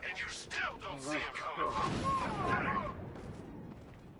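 Heavy punches land with thuds.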